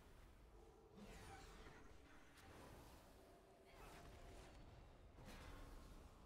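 Magic spell effects whoosh and shimmer in quick bursts.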